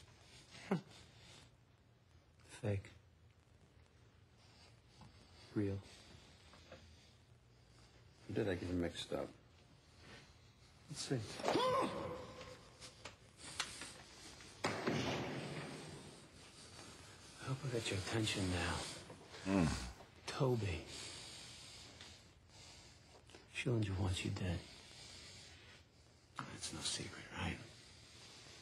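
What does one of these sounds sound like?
A man talks briefly into a close microphone, pausing often.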